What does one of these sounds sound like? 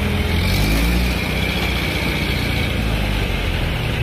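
A vehicle drives past on the road.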